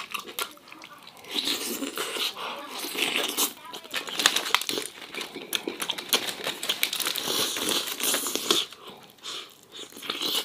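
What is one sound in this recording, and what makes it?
A man chews crispy roast chicken with loud crunching close to the microphone.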